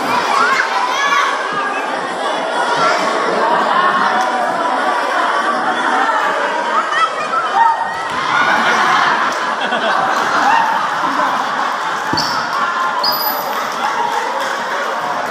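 A large crowd of children and adults chatters and cheers loudly in an echoing hall.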